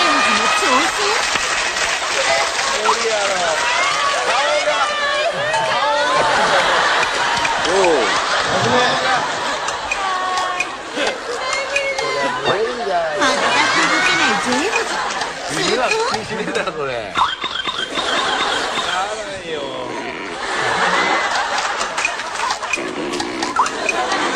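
A group of people laugh loudly.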